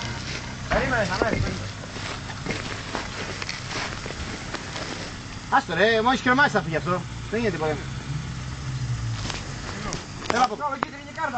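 An off-road vehicle's engine idles with a low rumble.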